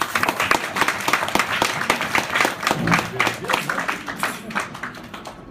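An audience applauds in a room, the clapping gradually fading.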